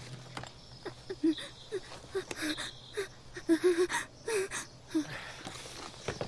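A young woman gasps and breathes heavily.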